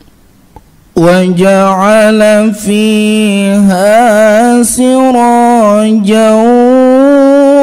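A man chants a recitation loudly through a microphone in a melodic, wavering voice.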